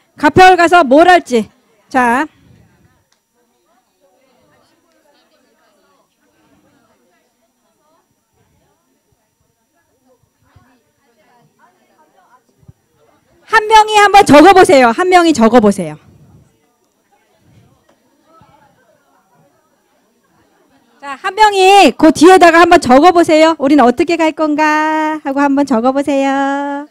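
A woman speaks into a microphone with animation, heard through loudspeakers in a room.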